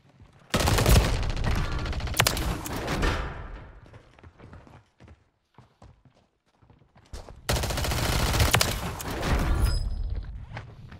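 A submachine gun fires rapid, loud bursts.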